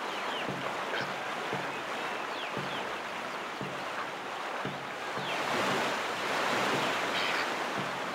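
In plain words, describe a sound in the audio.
Paddles splash rhythmically through water.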